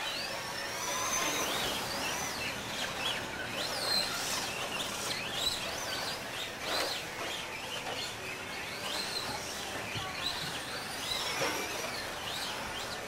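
A small electric motor of a toy car whines, rising and falling in pitch as it speeds up and slows down.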